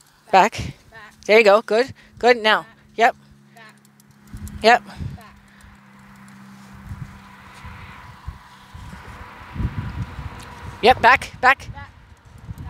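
A woman calls out commands nearby, outdoors.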